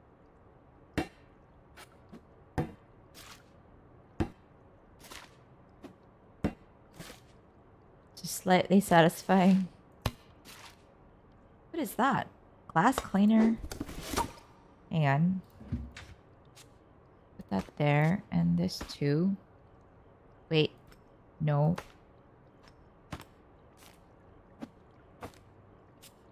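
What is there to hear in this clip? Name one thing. Small objects are lifted out of a cardboard box and set down with soft clicks and pops.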